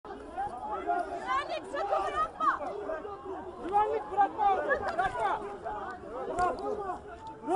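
A crowd of men and women shout and argue over one another outdoors.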